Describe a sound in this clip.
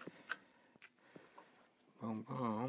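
Small metal and plastic parts click together in someone's hands.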